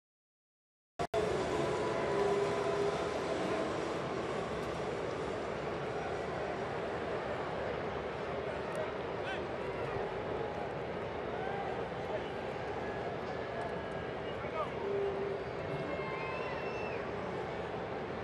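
A large stadium crowd murmurs and cheers steadily outdoors.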